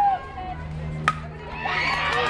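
A bat strikes a softball with a sharp crack.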